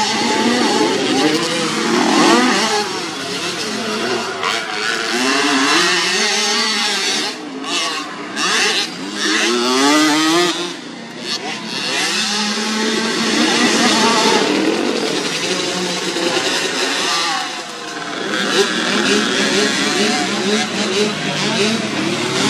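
A small dirt bike engine revs up and down, close by.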